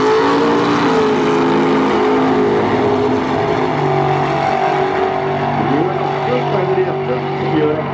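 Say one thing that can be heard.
A car engine roars steadily as it speeds away.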